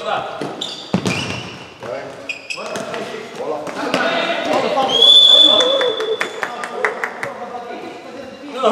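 A ball is kicked and thumps in a large echoing hall.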